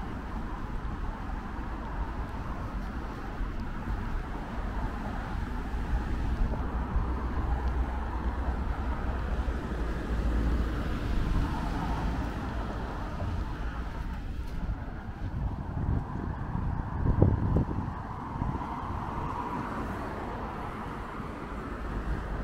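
Traffic hums steadily on a nearby road.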